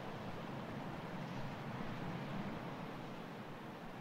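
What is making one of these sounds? Waves wash gently against a rocky shore.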